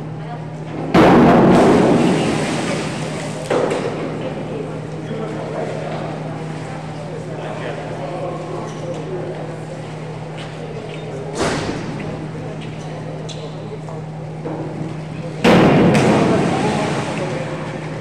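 A diver splashes into the water of an echoing indoor pool.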